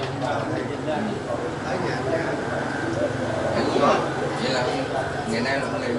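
Several men talk and chatter over one another close by.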